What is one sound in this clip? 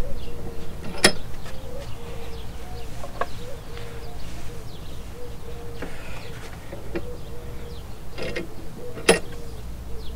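Metal parts click sharply.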